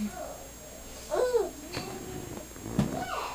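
A baby coos softly nearby.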